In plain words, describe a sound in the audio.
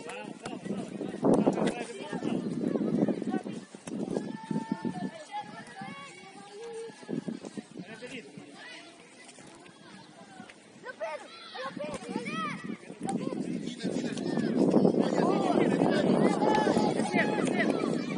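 Young players shout and call to each other outdoors across an open field.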